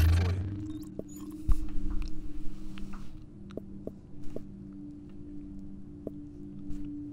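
Soft game menu clicks tick as a selection moves down a list.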